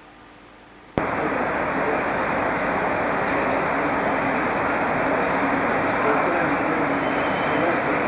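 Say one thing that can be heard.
A small diesel rail vehicle rumbles along curved rails.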